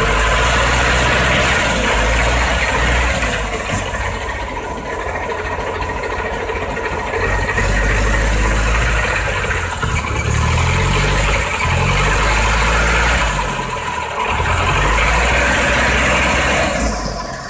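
A truck engine rumbles and labours, revving up and down.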